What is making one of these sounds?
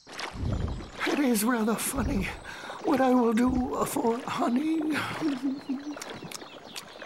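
A man speaks in a soft, slow cartoon voice.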